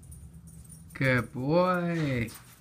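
A dog whines and yelps.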